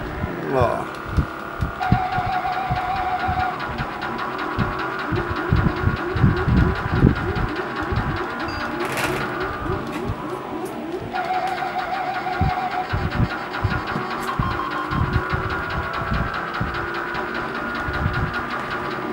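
A video game car engine revs and hums steadily.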